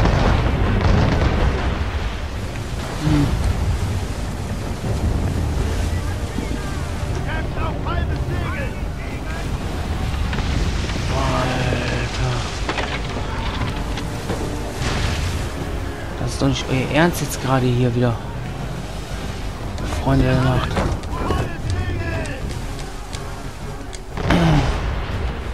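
Waves crash and wind roars around a sailing ship.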